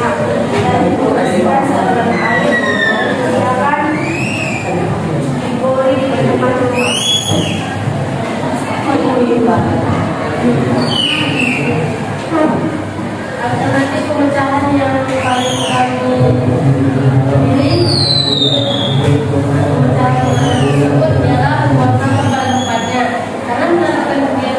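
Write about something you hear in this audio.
Children chatter and talk together in a busy room.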